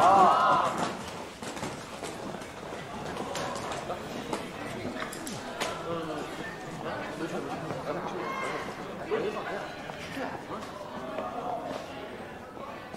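Students murmur and chatter in a room.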